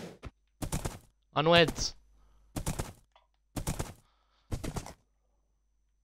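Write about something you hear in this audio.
Hooves clop steadily on stone.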